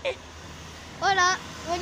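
A boy shouts and squeals loudly.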